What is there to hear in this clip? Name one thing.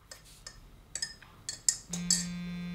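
A mug clinks on a hard counter.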